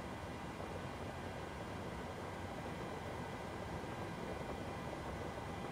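A steady low hum of aircraft systems fills a cockpit.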